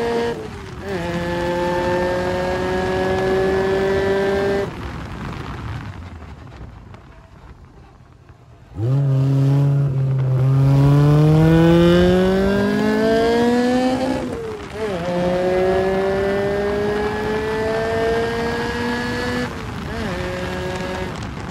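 Wind rushes past the open car.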